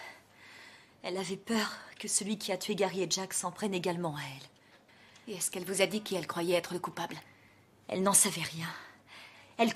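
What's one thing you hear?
A woman speaks calmly and earnestly, close by.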